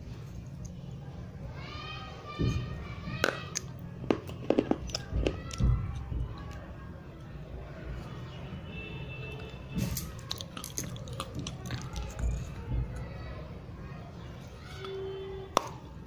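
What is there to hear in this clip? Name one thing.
A woman bites and crunches something brittle very close to the microphone.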